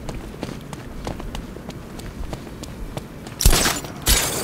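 Running footsteps slap quickly on wet pavement.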